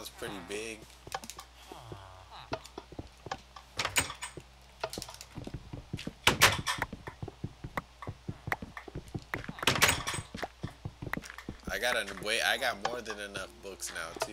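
Blocks knock and click sharply as they are placed in a game.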